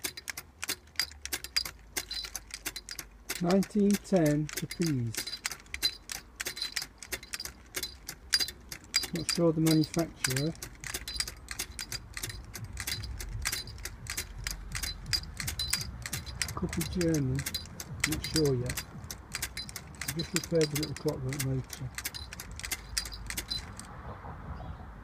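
A wind-up toy clicks and ticks rapidly as its mechanism turns.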